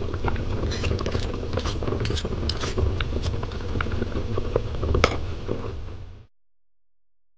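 Water bubbles and boils in a small pot.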